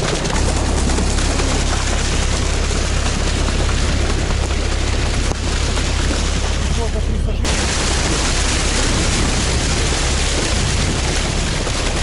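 An engine roars steadily close by.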